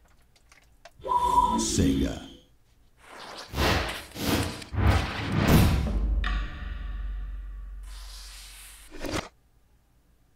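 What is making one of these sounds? Loud swooshing intro sounds rush past and fade.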